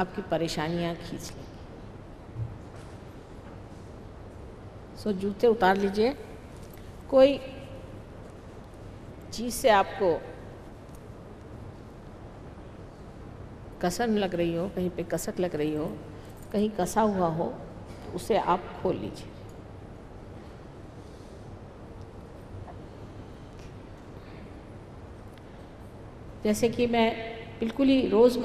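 A middle-aged woman speaks calmly into a microphone, pausing often.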